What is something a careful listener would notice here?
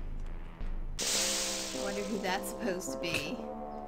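Loud electronic music starts suddenly and plays on.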